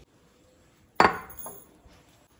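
A ceramic bowl knocks on a counter.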